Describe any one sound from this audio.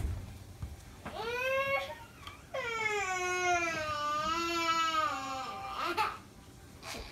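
A young girl cries with a long, loud wail.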